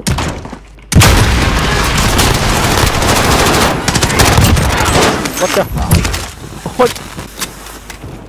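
Rapid gunfire rattles loudly at close range.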